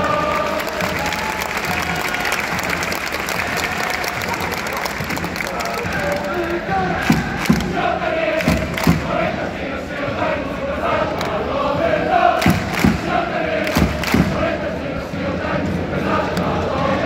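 A large crowd of football supporters chants in unison outdoors in a stadium.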